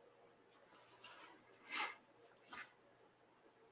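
A sketchbook rustles and bumps as it is moved on a table.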